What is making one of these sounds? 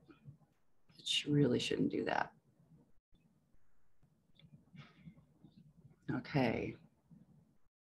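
A woman speaks briefly and with animation over an online call.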